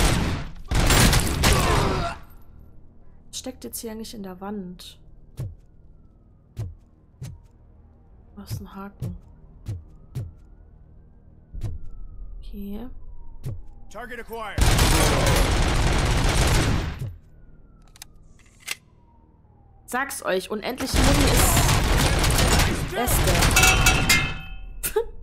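A gun fires rapid bursts of loud shots.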